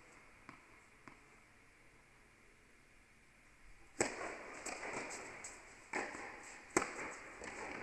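A tennis ball bounces repeatedly on the court before a serve.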